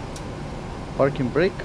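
A young man speaks briefly through a headset microphone.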